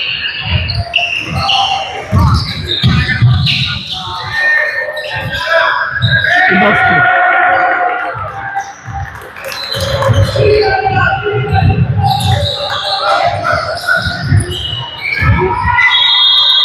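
A basketball bounces with dull thuds in an echoing hall.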